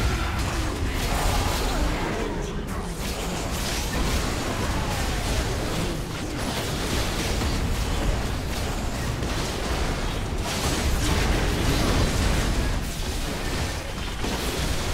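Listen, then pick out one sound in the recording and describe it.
Game spell effects whoosh and burst in a fast fight.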